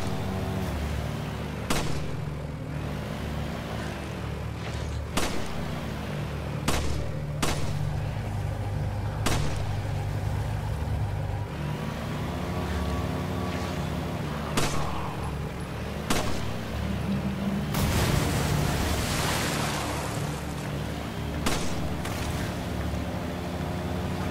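A boat motor drones steadily.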